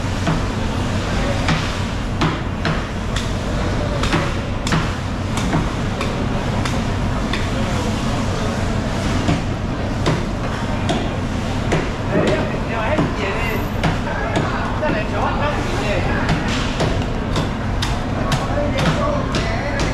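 Metal hooks knock and scrape on a wet floor.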